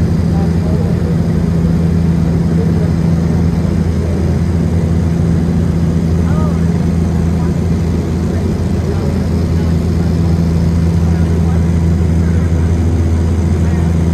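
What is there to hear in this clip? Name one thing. A propeller plane's engine drones loudly and steadily from inside the cabin.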